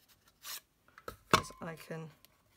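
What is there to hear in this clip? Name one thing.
A paper punch clunks as it is pressed down.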